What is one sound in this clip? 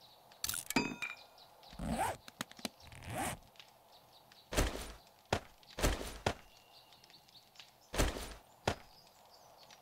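Short clicking and rustling menu sounds come as inventory items are picked up and moved.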